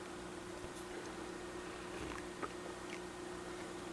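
A young man gulps a drink.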